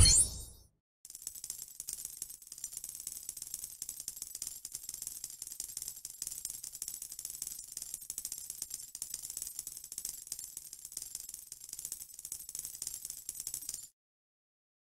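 A game score counter ticks rapidly as points add up.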